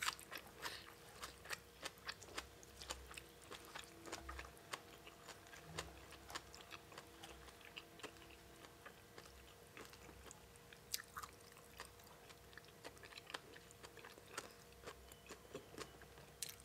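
Fingers squelch through a wet, saucy salad close to a microphone.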